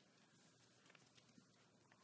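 Papers rustle softly among a seated audience.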